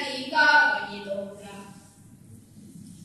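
Two young girls sing together in an echoing hall, their voices fading out.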